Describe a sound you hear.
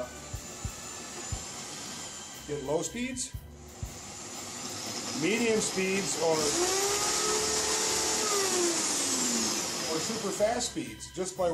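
A small power tool hums and whines steadily as it cuts into wood.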